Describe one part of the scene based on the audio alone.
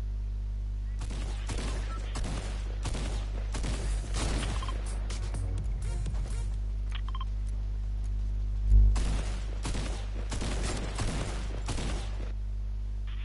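Game sound effects clatter and thump in quick bursts.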